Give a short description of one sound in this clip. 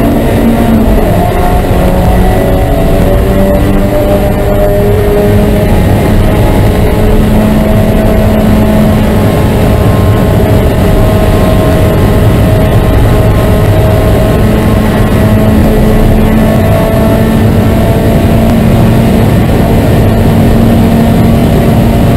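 A race car engine roars loudly from inside the cabin, its pitch rising and falling.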